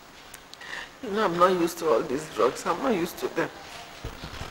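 An older woman speaks sorrowfully, close by.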